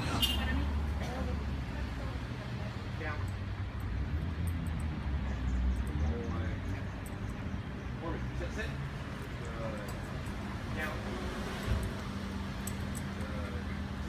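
A man gives short commands to a dog outdoors.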